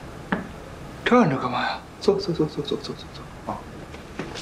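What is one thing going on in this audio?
A young man speaks sternly up close.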